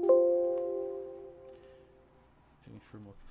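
A computer alert chime rings once and slowly fades.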